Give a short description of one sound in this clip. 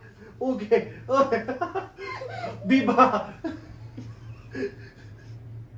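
A man laughs and talks playfully close by.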